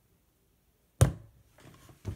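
A plastic cube is set down hard onto a surface.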